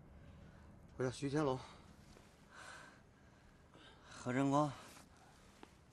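A young man speaks sleepily, half yawning.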